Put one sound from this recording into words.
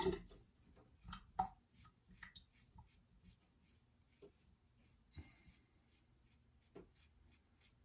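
A razor scrapes softly across stubble.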